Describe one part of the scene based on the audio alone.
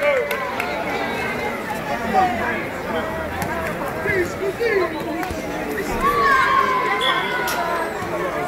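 Shoes squeak on a hard court.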